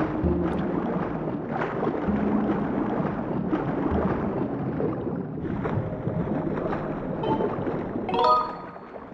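Water churns and splashes as a swimmer strokes through it.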